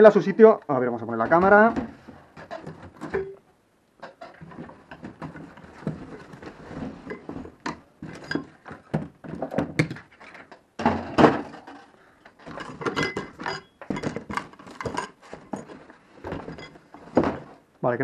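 Objects clatter and cardboard rustles as things are handled up close.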